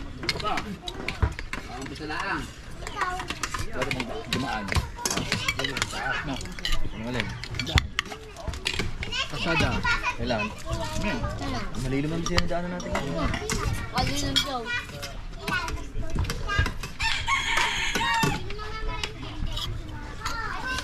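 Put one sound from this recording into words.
Spoons and forks clink against plates.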